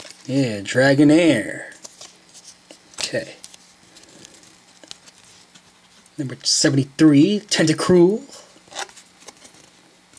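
Trading cards rustle and slide against each other in a person's hands.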